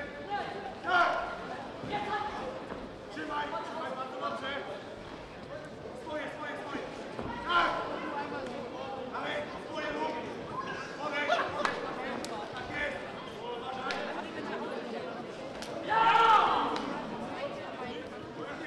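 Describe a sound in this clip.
Boxing gloves thud against bodies in quick bursts.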